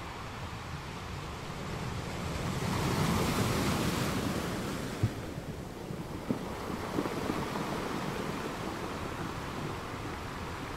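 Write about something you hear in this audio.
Ocean waves crash and roar against rocks close by, swelling and easing.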